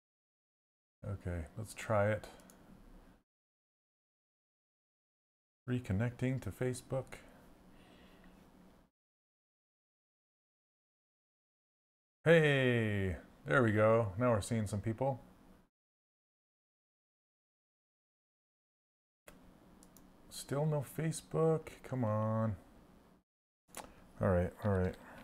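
A middle-aged man speaks calmly into a close microphone, in bursts with long pauses.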